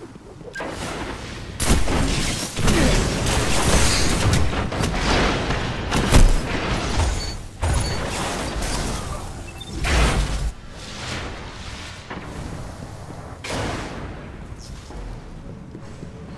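Gunfire and energy blasts crack in quick bursts.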